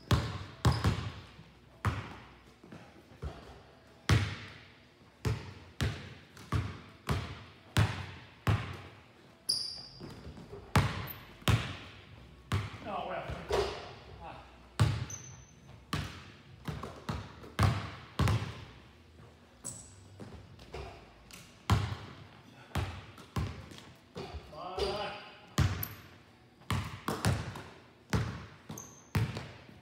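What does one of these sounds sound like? Basketballs bounce on a wooden floor, echoing in a large hall.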